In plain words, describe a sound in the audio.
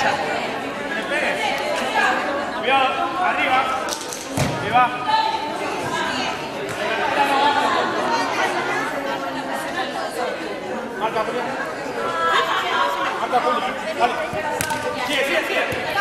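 Young women shout and chatter in a large echoing hall.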